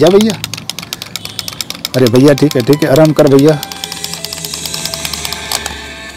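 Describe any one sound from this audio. A small toy motor whirs and clicks.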